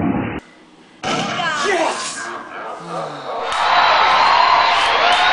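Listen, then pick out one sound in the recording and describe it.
A young woman shouts and laughs with excitement nearby.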